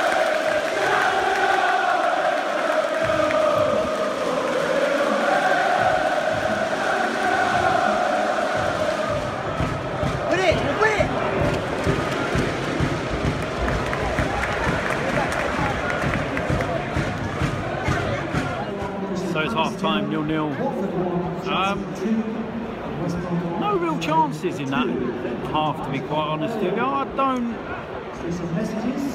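A stadium crowd murmurs and cheers in the background.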